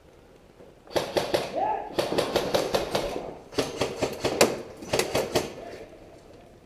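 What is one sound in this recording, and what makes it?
A gun fires rapid bursts of shots close by.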